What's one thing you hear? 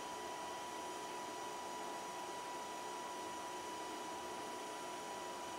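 A computer hums steadily with a faint high whine.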